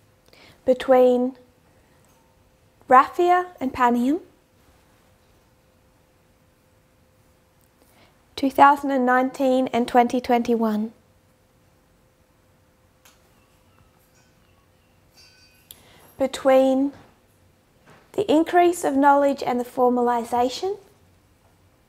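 A young woman speaks calmly into a close microphone, in short phrases with pauses.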